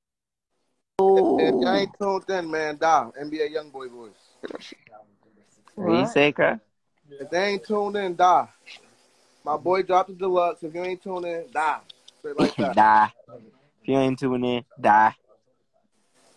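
A young man talks casually over an online call.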